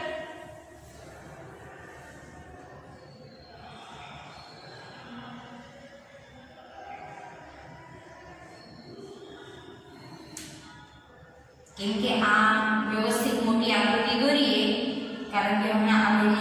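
A marker squeaks on a whiteboard.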